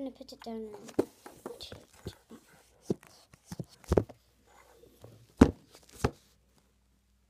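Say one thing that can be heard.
A phone rubs and knocks against clothing as it is handled.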